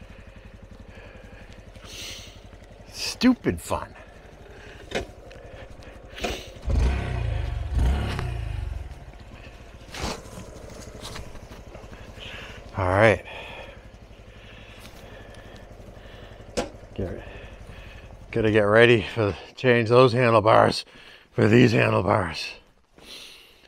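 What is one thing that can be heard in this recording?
A small motorcycle engine idles steadily close by.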